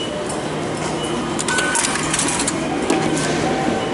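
A ticket gate clicks and beeps as a ticket is fed in.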